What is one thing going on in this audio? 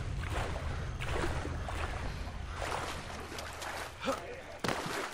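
Water sloshes and splashes as someone swims.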